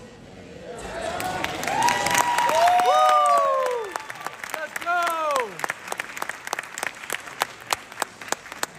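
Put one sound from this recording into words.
An audience claps rapidly.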